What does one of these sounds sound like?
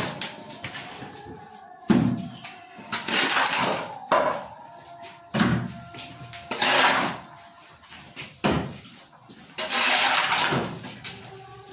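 A shovel scrapes repeatedly across a concrete floor.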